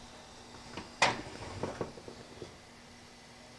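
A metal pan clinks against an oven rack.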